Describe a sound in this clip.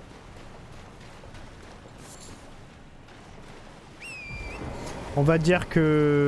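Splashing footsteps wade through shallow water.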